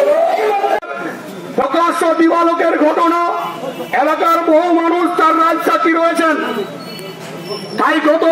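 An elderly man speaks forcefully through a microphone and loudspeaker.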